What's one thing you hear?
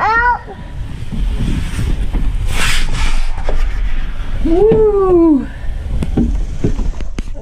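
Clothes rub and squeak against a plastic slide tube.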